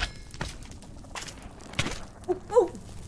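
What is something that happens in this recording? Video game sound effects pop and crackle.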